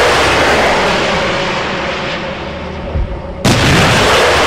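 A rocket rushes by with a loud hiss.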